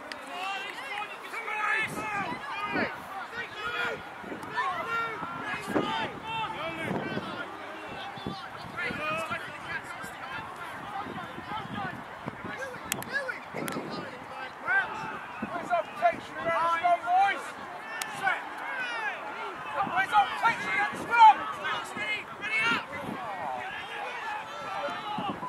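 Young women shout to one another across an open field outdoors.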